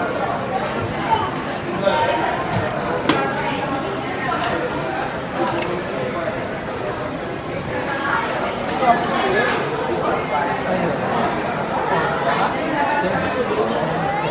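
A young girl speaks close by.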